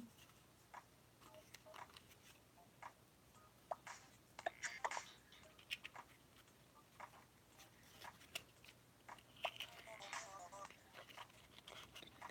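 Small plastic parts click and snap in hands.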